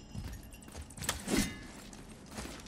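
A wooden chest creaks and thuds open.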